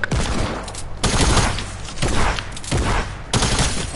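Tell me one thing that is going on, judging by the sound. A pickaxe strikes repeatedly.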